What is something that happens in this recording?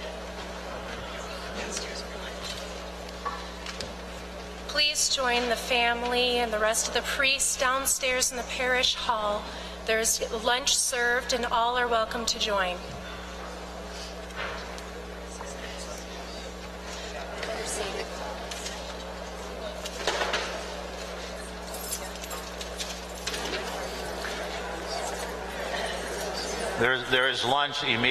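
A crowd murmurs and chatters softly in a large echoing hall.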